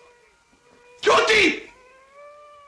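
A young man gasps loudly.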